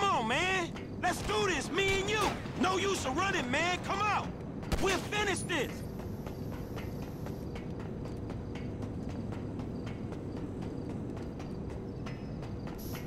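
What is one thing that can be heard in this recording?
Footsteps run quickly across a metal walkway.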